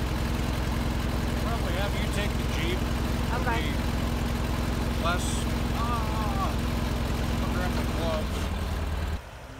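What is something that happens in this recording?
A man speaks calmly close by over the engine.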